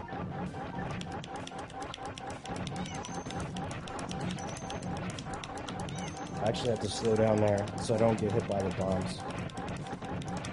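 Upbeat electronic game music plays with a quick, steady beat.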